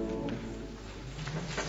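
A women's choir sings a held chord that fades out.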